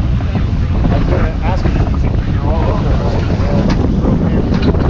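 A man's voice calls out nearby over the wind.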